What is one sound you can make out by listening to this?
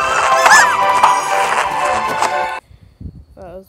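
Lively video game music plays, then cuts off abruptly.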